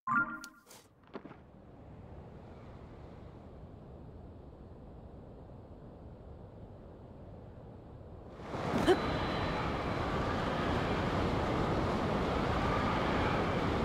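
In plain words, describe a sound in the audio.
Wind rushes past steadily, growing louder.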